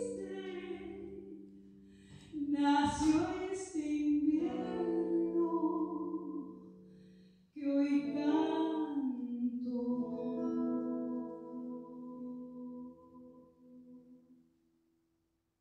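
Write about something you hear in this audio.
A woman sings into a microphone in a large hall.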